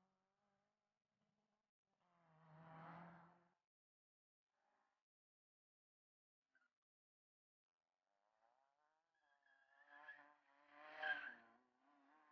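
Tyres squeal on pavement.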